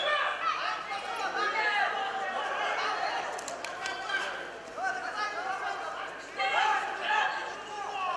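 A crowd in a large echoing hall shouts and cheers.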